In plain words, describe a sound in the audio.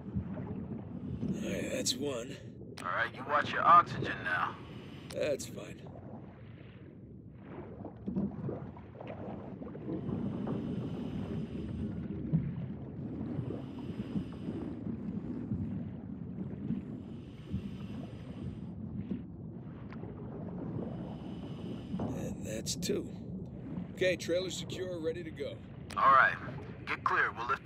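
A diver breathes through a regulator underwater.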